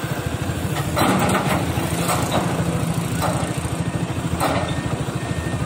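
An excavator bucket knocks and clanks.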